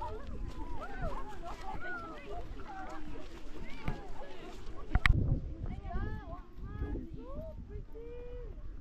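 Several young women chatter and call out nearby, outdoors.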